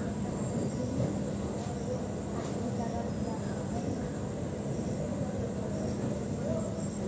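A freight train rumbles slowly along the tracks nearby.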